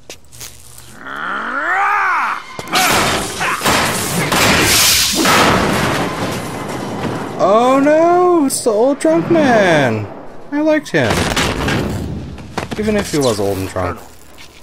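A young man shouts and exclaims close to a microphone.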